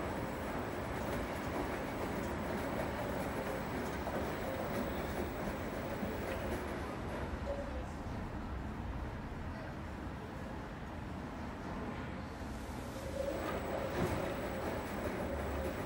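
A front-loading commercial washing machine drum turns and hums.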